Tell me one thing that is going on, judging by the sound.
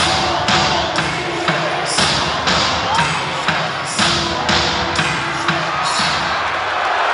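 A crowd claps and bangs in a fast, steady rhythm.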